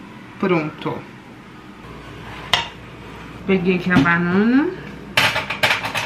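A pancake slides from a pan onto a plate.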